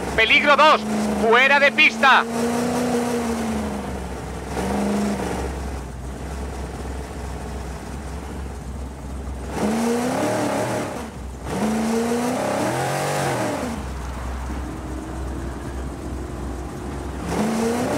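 A rally car engine revs hard and shifts gears.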